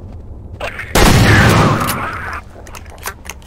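An explosion booms loudly and fades.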